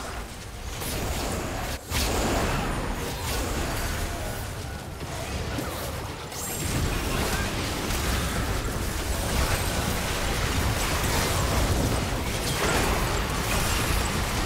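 Spell blasts and weapon hits clash in a fast game battle.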